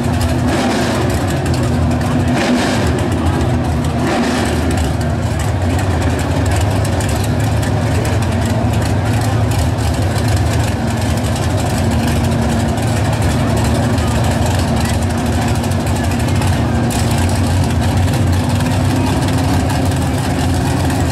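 Drag racing engines idle and rumble loudly nearby.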